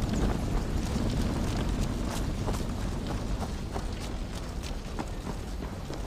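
Footsteps crunch over muddy ground and wooden planks.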